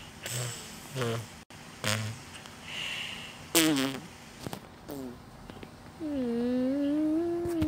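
A young boy talks and makes playful sounds close to a microphone.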